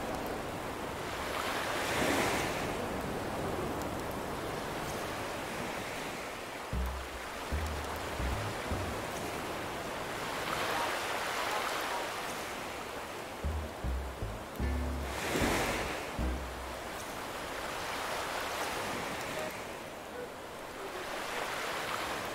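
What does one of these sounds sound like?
Waves wash softly onto a beach in regular swells.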